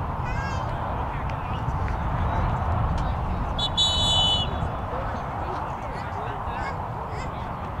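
Wind rumbles across an open outdoor field.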